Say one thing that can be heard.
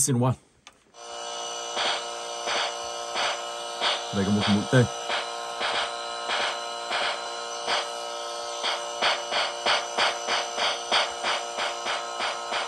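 Game music plays with a steady, pulsing beat.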